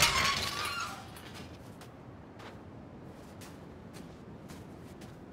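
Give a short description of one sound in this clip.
Footsteps walk softly on a hard floor.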